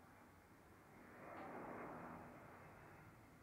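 An airplane roars overhead.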